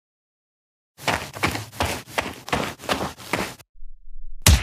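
Footsteps hurry across a floor.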